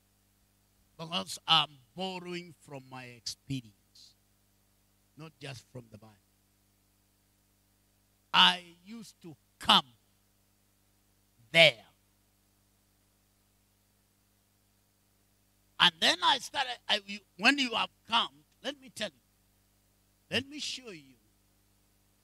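A man speaks with animation through a microphone, in bursts with long pauses.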